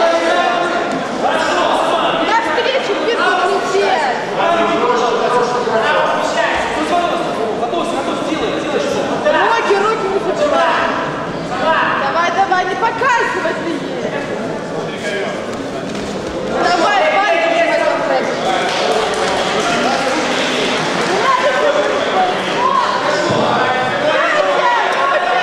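Gloved fists and feet thud against padding.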